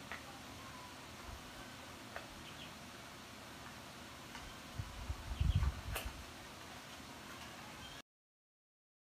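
Hard plastic packaging clicks and rustles as it is handled close by.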